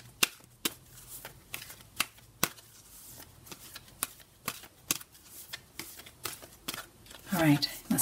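Playing cards riffle and snap against each other as they are shuffled.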